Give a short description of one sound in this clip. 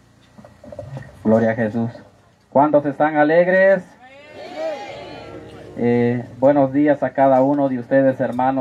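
A man speaks through a loudspeaker outdoors.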